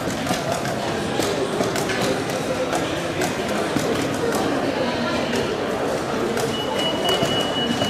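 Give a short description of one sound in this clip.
A chess clock button clicks as it is pressed.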